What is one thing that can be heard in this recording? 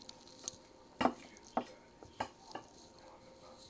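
Cutlery clinks against a plate.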